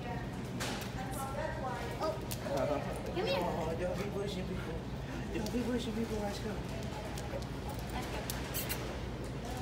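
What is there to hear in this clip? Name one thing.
A dog's claws tap on a hard floor.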